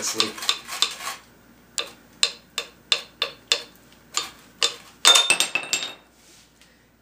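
A metal strap clicks and rattles as it is pulled tight through a tool.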